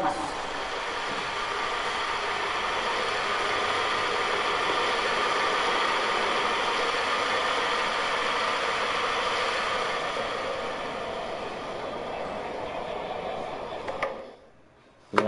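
A large crowd applauds steadily.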